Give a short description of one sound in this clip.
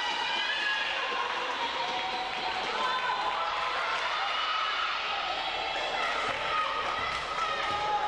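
Young women call out to each other across a large echoing hall.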